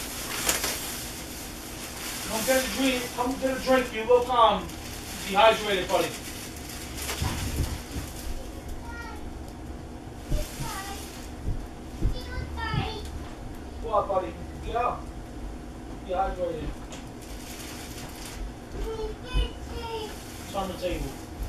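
A plastic bag rustles and crinkles.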